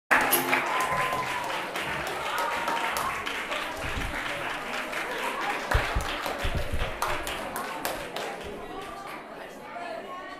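A group of children play violins, guitars and a cello together in a room with some echo.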